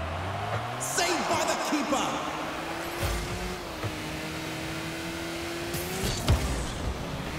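A ball is struck with a loud thump.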